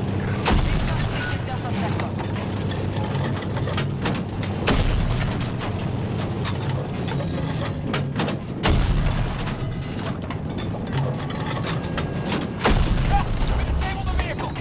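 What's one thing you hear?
A tank cannon fires booming shots.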